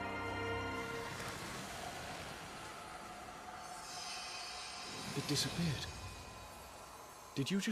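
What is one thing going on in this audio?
A magical shimmering swells and then fades away.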